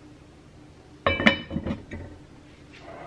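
A heavy lid clanks down onto a pot.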